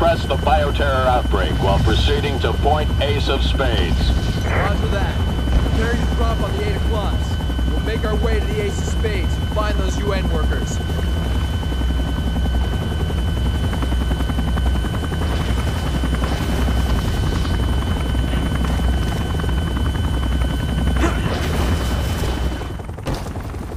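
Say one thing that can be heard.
A helicopter engine drones steadily nearby.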